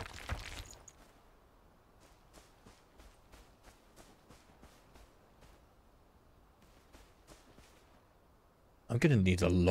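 Footsteps run quickly through grass.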